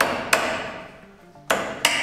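A hammer taps on wood.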